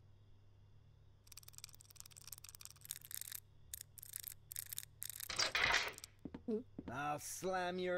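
A safe dial clicks as it turns.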